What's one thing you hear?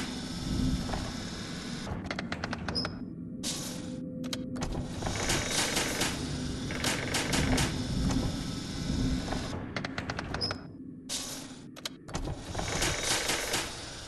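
A mechanical figure whirs and creaks as it moves close by.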